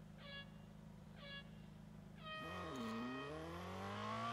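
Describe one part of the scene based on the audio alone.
Countdown beeps sound twice, then a longer start tone.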